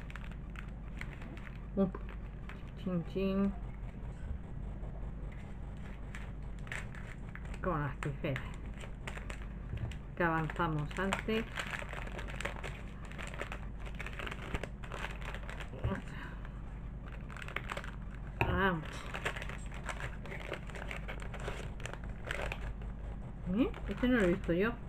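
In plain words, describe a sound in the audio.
Plastic wrapping crinkles and rustles in someone's hands.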